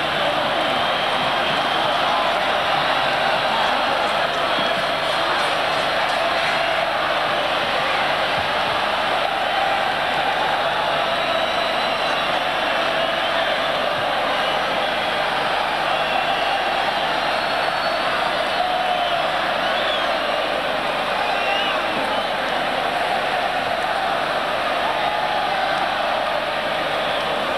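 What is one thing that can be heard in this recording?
Scattered fans whistle shrilly from the crowd.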